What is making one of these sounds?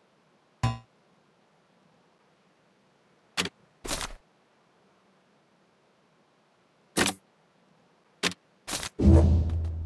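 Menu buttons click sharply now and then.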